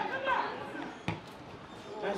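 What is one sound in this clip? A football is kicked hard once.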